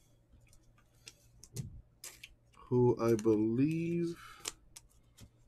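A plastic card sleeve crinkles and rustles between fingers.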